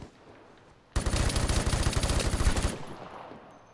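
An automatic rifle fires a long rapid burst.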